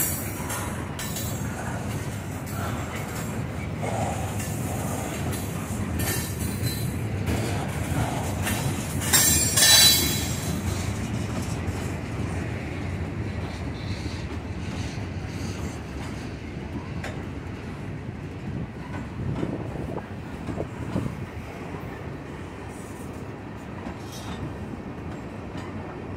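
Wheels clatter and squeal on the rails.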